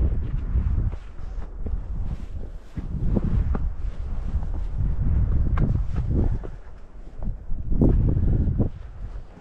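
Footsteps scuff on rock.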